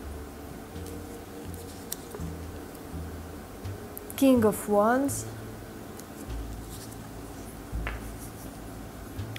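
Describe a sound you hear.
Playing cards slide and tap softly as they are handled.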